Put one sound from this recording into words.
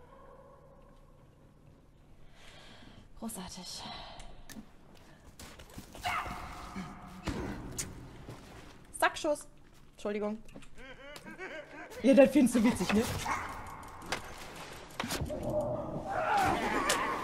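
A young woman talks and exclaims with animation close to a microphone.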